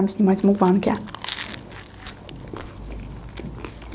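Crusty bread crunches as a young woman bites and chews.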